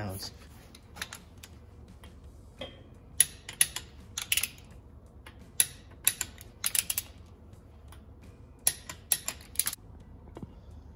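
Metal parts click and clink as a hand turns a timing gear.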